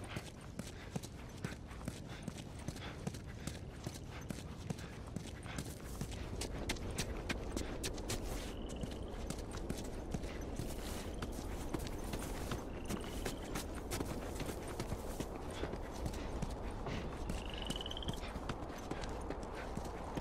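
Footsteps fall on stone.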